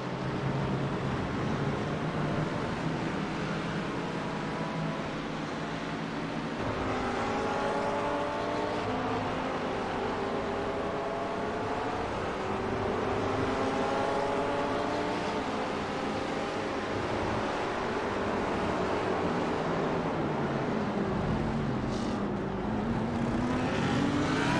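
Racing car engines roar and rev, shifting up and down in pitch.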